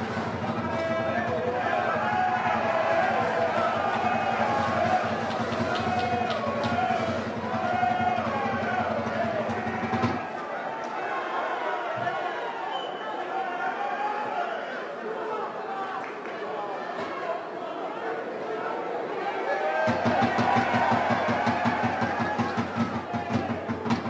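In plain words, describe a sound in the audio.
Male players shout to each other on an open field.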